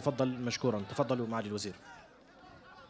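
A man speaks loudly through a microphone and loudspeakers, outdoors.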